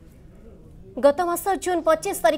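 A young woman reads out the news calmly through a microphone.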